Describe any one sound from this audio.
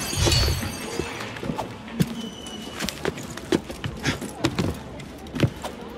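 Footsteps thud and scrape on a wall and on rooftop tiles.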